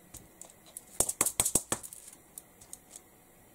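A sponge dabs paint onto a stencil with soft tapping sounds.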